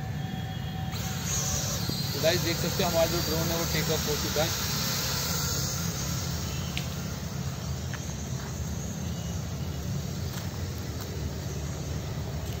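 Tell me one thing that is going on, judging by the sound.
A small toy drone buzzes as its propellers spin.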